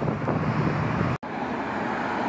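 Traffic rumbles steadily at a street corner.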